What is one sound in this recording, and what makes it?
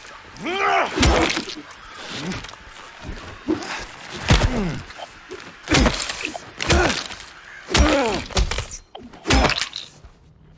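A metal pipe strikes a body with heavy thuds.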